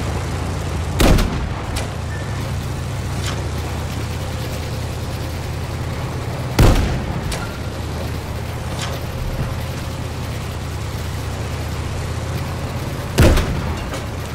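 A heavy cannon fires with a loud boom.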